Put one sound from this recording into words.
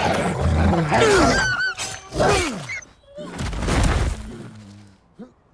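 A wolf snarls and growls fiercely up close.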